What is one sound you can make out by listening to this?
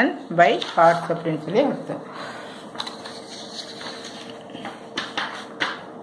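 Paper rustles as a page is handled.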